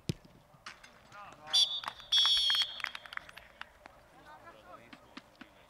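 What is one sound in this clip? Young men cheer and shout excitedly after a goal.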